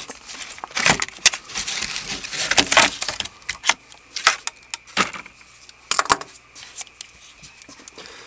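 A folding utility knife clicks as its blade snaps open and shut.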